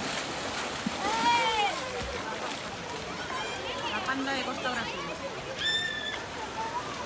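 Children shout and call out in a pool at a distance.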